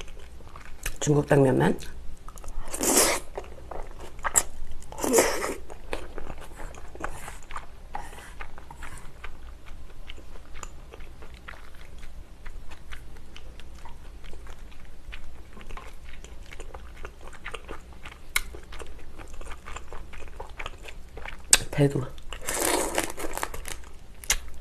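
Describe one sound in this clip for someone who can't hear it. A young woman slurps noodles loudly, close to the microphone.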